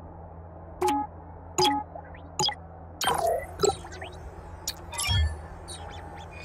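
Menu interface sounds click and chime as options are selected.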